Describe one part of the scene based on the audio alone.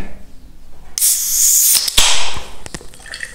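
A can pops open with a hiss.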